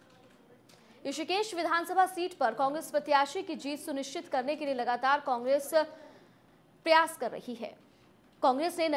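A young woman reads out news close to a microphone, with animation.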